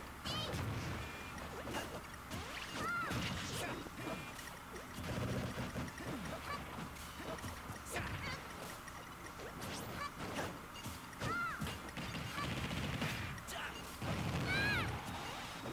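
Video game explosions burst with booming crashes.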